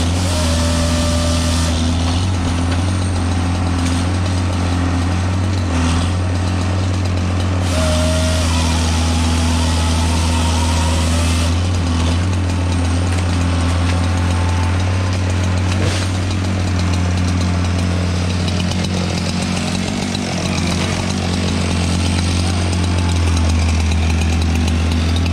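A heavy diesel machine rumbles steadily nearby.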